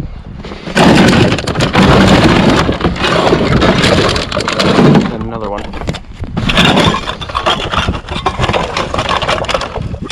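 Plastic bottles crinkle and crackle as they are handled.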